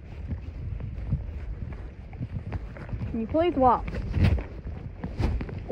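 A horse's hooves thud steadily on the ground.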